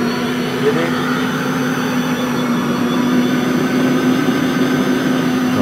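An electric meat grinder's motor hums steadily.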